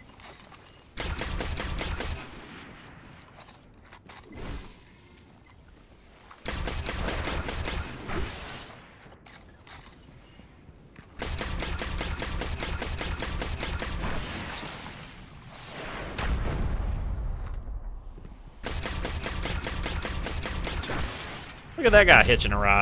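Rapid automatic gunfire rattles in short bursts.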